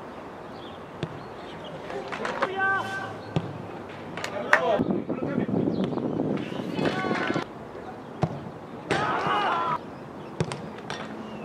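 A boot kicks a football with a sharp thud outdoors.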